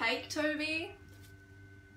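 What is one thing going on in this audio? A young woman speaks briefly close to the microphone.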